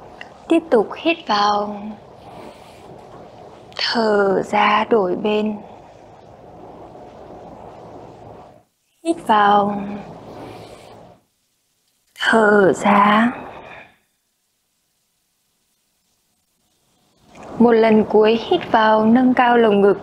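A young woman speaks calmly and clearly into a close microphone, pausing between phrases.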